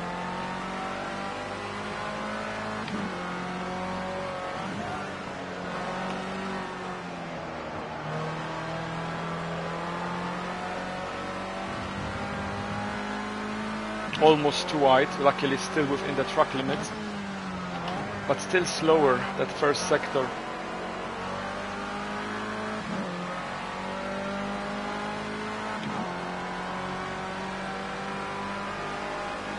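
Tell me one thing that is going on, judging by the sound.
A racing car engine roars, rising in pitch and dropping as the gears shift.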